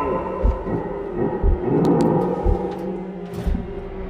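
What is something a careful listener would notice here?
A metal locker door bangs shut.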